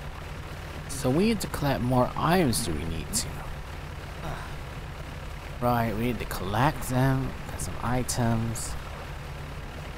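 A young woman talks with animation through a microphone, close by.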